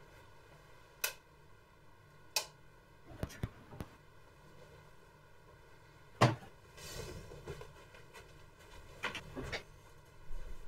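Loud thuds and knocks sound nearby.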